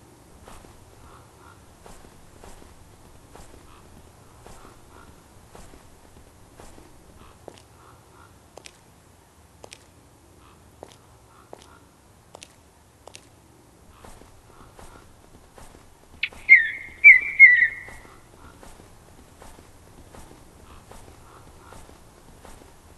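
A walrus flops heavily across snow with soft, regular thuds.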